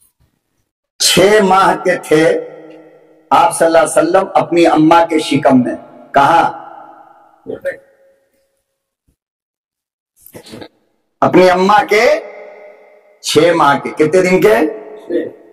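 An elderly man preaches with animation through a microphone and loudspeakers, in a hall that rings with echo.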